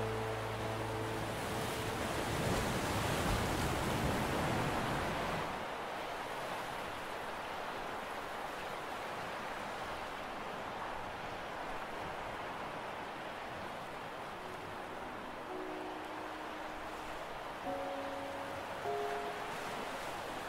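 Wind blows steadily outdoors, gusting louder at first.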